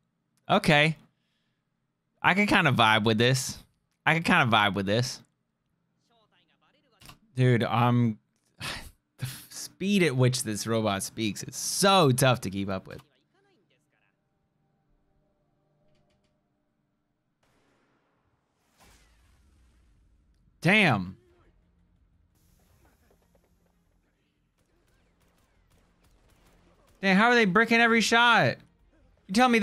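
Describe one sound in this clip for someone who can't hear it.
A young man talks with animation into a close microphone, with pauses.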